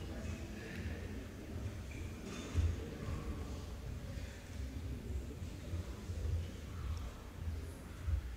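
A crowd murmurs quietly in a large echoing hall.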